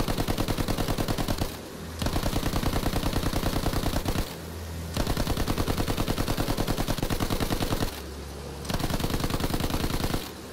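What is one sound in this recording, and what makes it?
An aircraft engine drones steadily.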